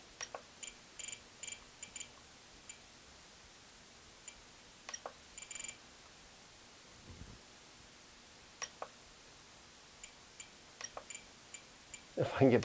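A handheld remote control beeps softly as its buttons are pressed.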